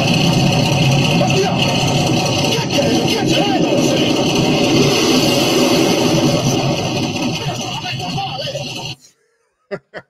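A boat engine drones loudly.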